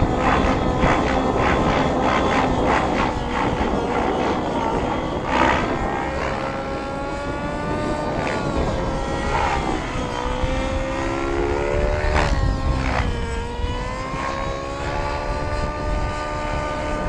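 A nitro model helicopter whines overhead, rising and falling in pitch as it flies aerobatics.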